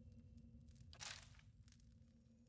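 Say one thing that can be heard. A magic spell bursts with a sharp whoosh.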